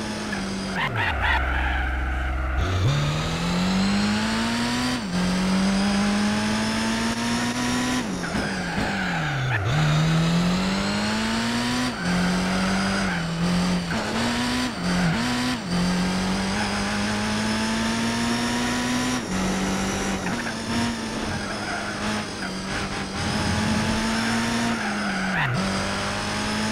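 Tyres squeal around tight corners.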